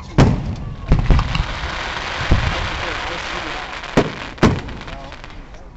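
Fireworks crackle and fizz after bursting.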